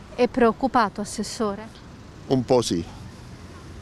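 An elderly man speaks calmly into a microphone close by.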